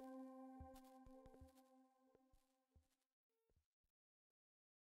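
A modular synthesizer plays sharp, irregular clicking pulses.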